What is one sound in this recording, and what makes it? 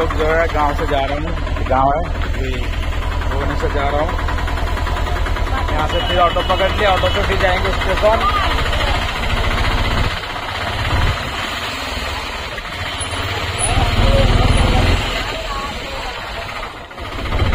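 An auto-rickshaw engine rattles steadily.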